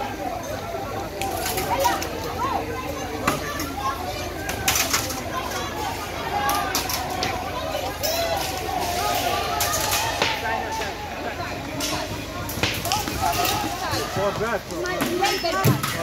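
A crowd of men and women shouts and yells nearby, outdoors.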